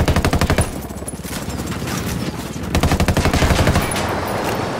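A rifle fires rapid bursts of gunshots close by.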